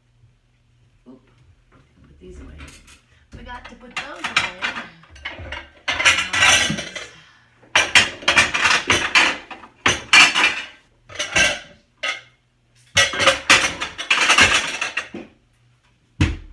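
Objects clatter and rustle as a woman rummages through items on top of a refrigerator.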